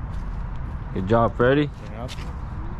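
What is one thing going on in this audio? Another man answers close by.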